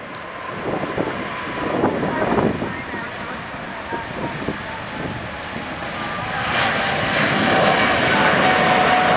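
A Boeing 777 freighter's twin jet engines roar at takeoff thrust as it lifts off and climbs.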